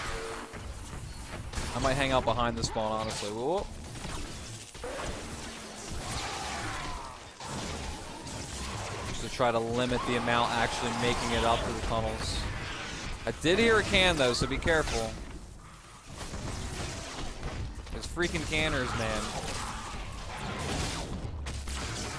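Electric zaps and blasts crackle in a video game battle.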